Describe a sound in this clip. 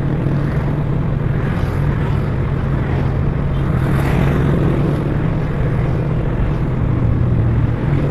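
Scooters and cars drive by on the road.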